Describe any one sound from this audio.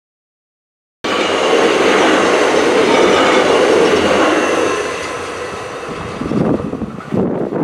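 A second train rushes past close by, then fades into the distance.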